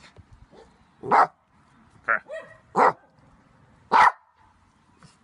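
A small dog barks sharply close by.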